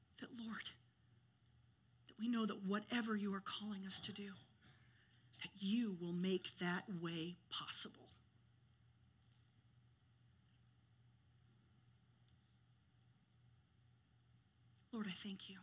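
A woman speaks calmly to an audience through a microphone, with pauses.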